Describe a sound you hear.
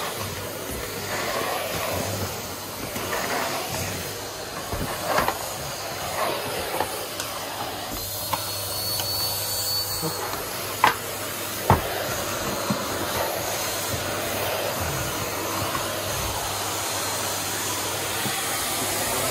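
A vacuum cleaner runs with a steady roar.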